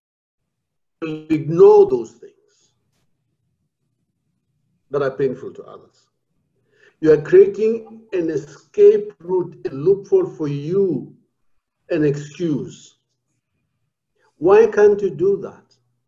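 An elderly man speaks calmly in bursts over an online call.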